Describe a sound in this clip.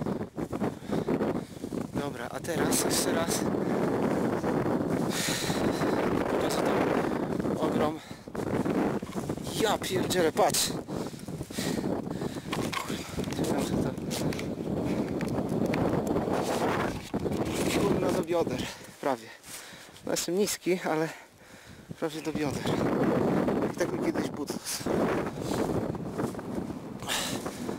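Strong wind buffets the microphone outdoors.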